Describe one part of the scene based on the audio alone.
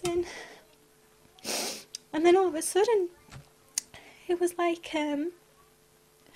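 A woman sings close to a microphone.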